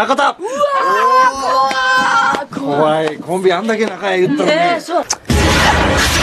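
Young women laugh loudly and excitedly.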